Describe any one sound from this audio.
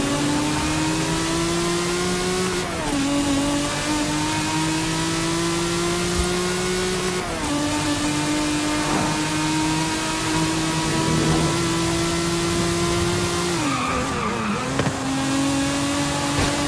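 A V12 sports car engine accelerates at full throttle, shifting up through the gears.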